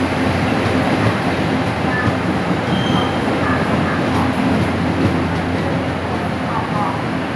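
A train rumbles and rattles steadily past, close by.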